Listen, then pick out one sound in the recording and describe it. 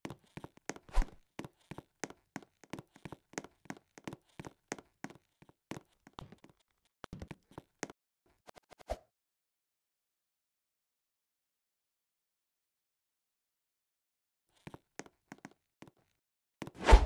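Quick footsteps thud on a wooden floor and stairs.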